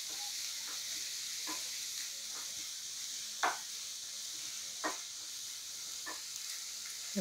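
A spatula scrapes and knocks against a pan.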